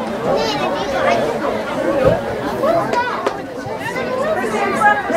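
Young women and men talk and call out across an open field.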